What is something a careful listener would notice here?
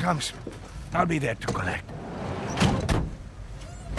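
A van door slides shut with a thud.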